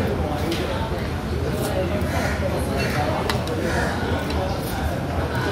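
A young man slurps noodles noisily up close.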